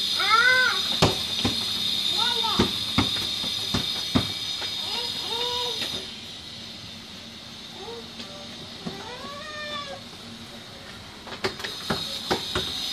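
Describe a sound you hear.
A ball thumps on a hard floor.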